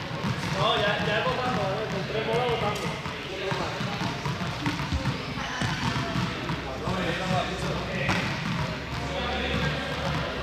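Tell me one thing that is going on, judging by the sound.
Sneakers squeak and thud on a hard floor as a young man runs.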